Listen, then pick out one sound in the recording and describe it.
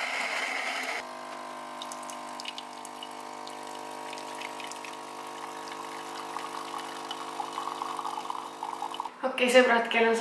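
A coffee machine hums steadily as coffee pours into a cup.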